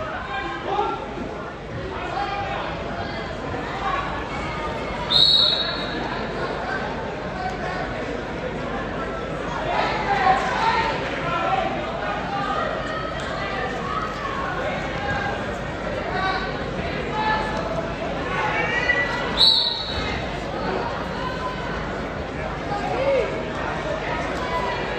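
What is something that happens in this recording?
A crowd chatters and calls out throughout a large echoing gym.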